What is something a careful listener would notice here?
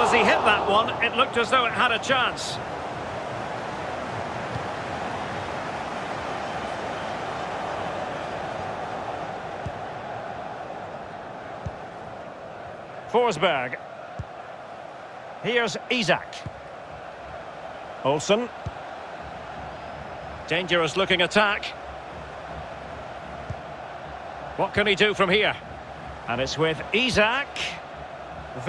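A large stadium crowd murmurs and cheers.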